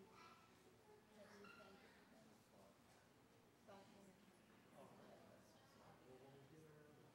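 An elderly woman speaks quietly nearby.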